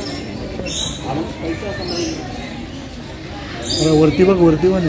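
A parrot chatters with voice-like calls close by.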